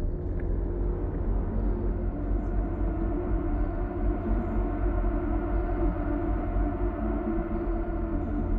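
A vehicle's engine rumbles steadily.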